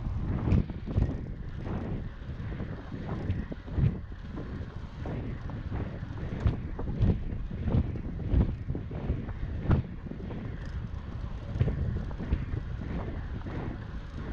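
Bicycle tyres roll and bump over a rough paved path.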